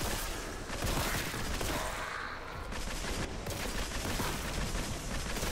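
A rapid-fire energy gun shoots in bursts.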